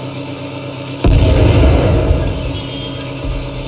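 A tank cannon fires with a loud boom that rumbles away.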